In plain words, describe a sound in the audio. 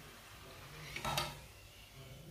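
A fried dumpling drops back into hot oil with a splash.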